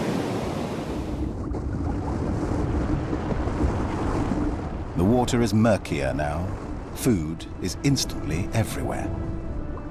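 Water churns and rumbles deeply underwater.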